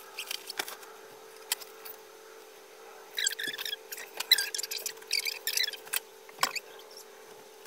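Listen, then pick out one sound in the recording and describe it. Plastic hangers clack and click.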